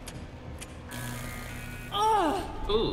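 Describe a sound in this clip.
An electric spark crackles and zaps.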